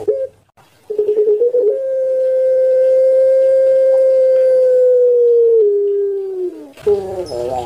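A dove coos close by in long, drawn-out calls.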